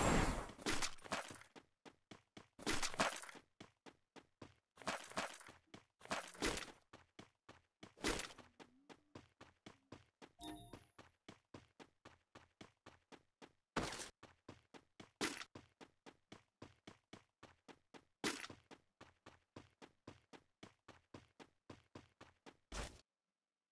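Quick footsteps run steadily over the ground.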